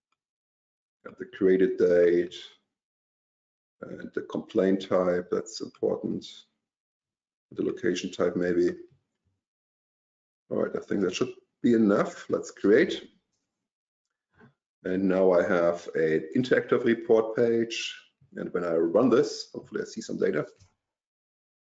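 A man speaks calmly into a microphone, heard as over an online call.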